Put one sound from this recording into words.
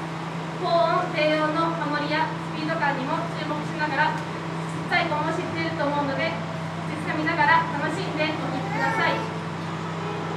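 A young woman speaks calmly into a microphone over loudspeakers.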